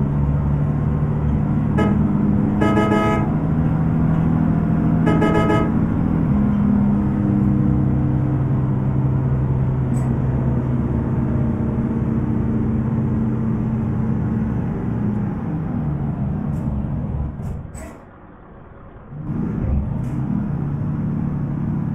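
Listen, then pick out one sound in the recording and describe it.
A bus engine drones and hums as the bus drives along.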